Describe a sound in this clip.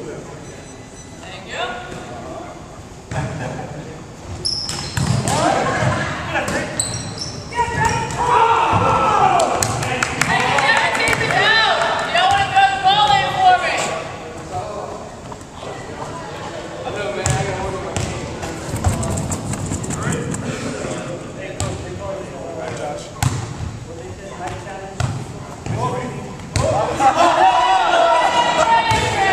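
Men talk and call out in a large echoing hall.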